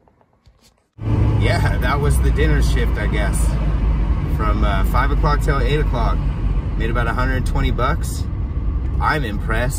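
A car engine hums steadily from inside.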